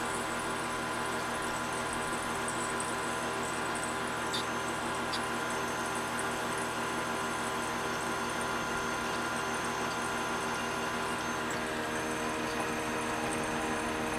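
A milling machine motor hums steadily.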